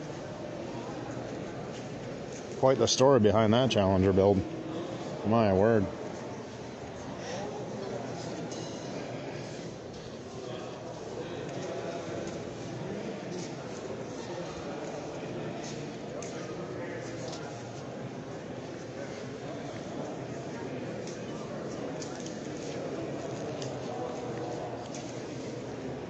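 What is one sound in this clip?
People murmur in a large echoing hall.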